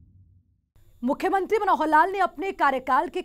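A young woman speaks clearly into a microphone, like a news presenter.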